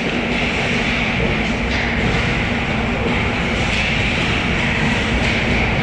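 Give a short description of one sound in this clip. Ice skates scrape and carve across the ice in a large echoing hall.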